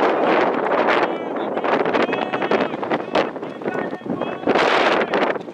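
Men call out to each other at a distance.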